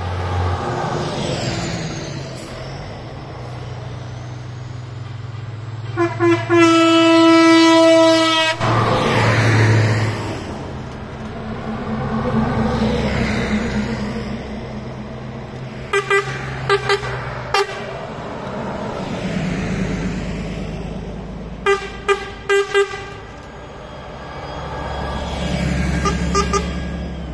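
Buses drive past one after another, their engines rumbling and their tyres rolling on the road.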